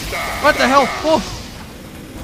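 A flamethrower roars out a burst of fire.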